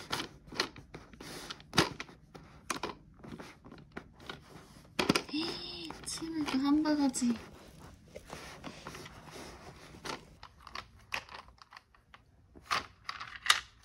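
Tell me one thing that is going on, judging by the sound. Plastic toy pieces click and rattle under a baby's hands.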